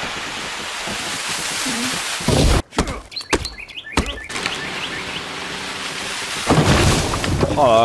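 A tall tree creaks and crashes to the ground.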